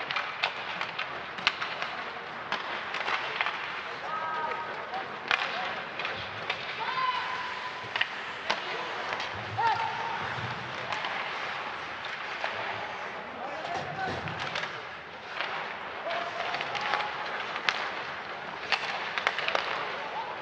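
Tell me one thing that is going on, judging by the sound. Hockey sticks click and clack against the puck.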